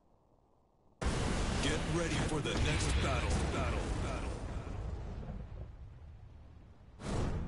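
A loud explosion bursts and rumbles, then slowly dies away.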